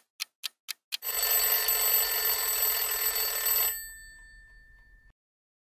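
An alarm clock bell rings loudly, then fades.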